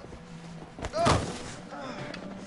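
A body thuds onto a hard floor.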